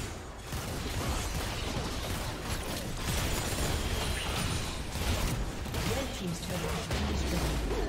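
Game spells blast and crackle in a chaotic fight.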